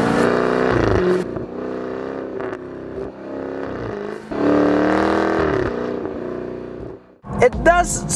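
A sports car engine rumbles and revs loudly.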